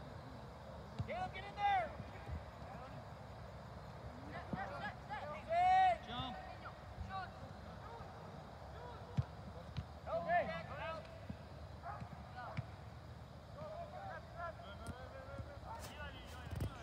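Children shout and call out in the distance outdoors.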